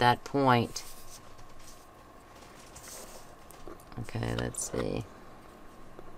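A sheet of card slides and rustles across a table.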